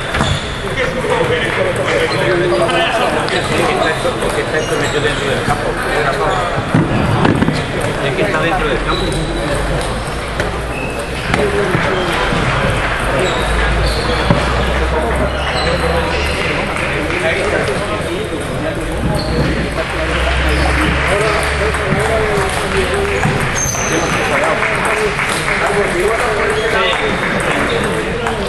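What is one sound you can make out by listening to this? Table tennis balls click against paddles and tables nearby.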